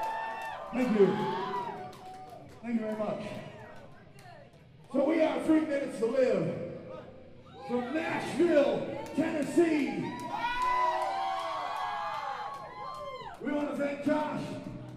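A man shouts rhythmically into a microphone through loud speakers in a large echoing hall.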